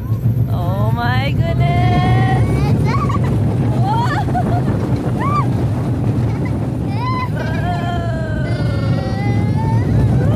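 A roller coaster rumbles and rattles along its track.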